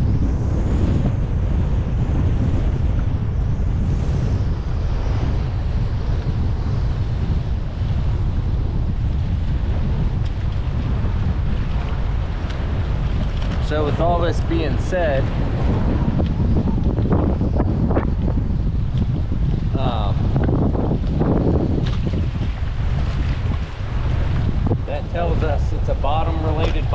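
Strong wind buffets loudly throughout, outdoors.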